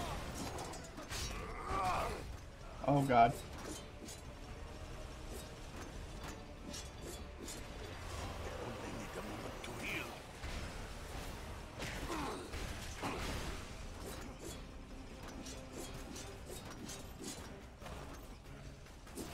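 Explosions boom and crack.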